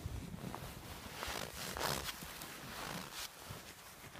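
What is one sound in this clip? A gloved hand digs into powdery snow with soft crunching.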